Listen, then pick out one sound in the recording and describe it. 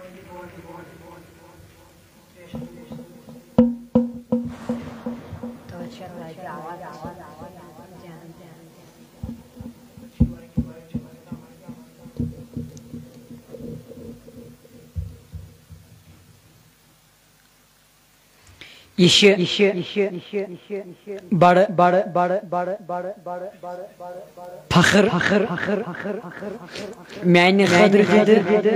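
A boy recites in a chanting voice into a microphone, close up.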